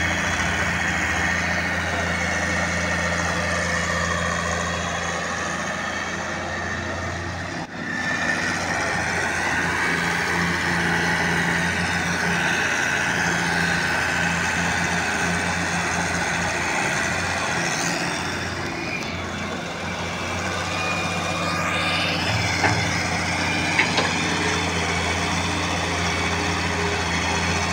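A diesel engine rumbles steadily nearby.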